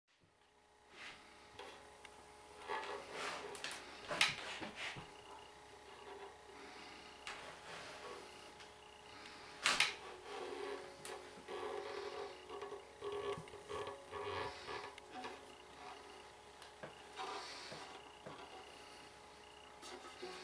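Guitar strings ring and buzz softly.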